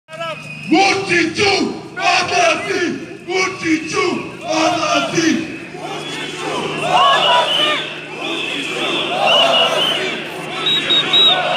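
A large crowd chants loudly in rhythm outdoors.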